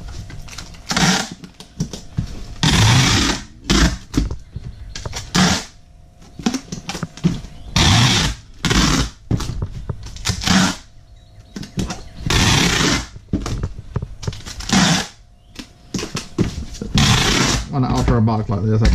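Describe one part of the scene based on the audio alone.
Packing tape screeches loudly as it is pulled off a dispenser in quick bursts.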